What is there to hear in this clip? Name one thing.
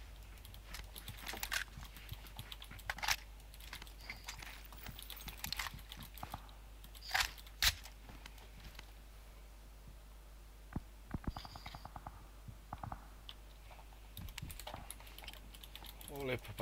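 Sharp clicks and clatters of a video game's item pickups sound.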